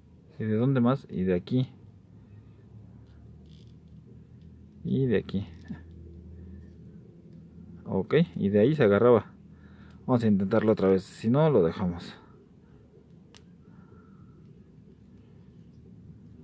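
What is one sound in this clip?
Small plastic joints click softly as they are twisted.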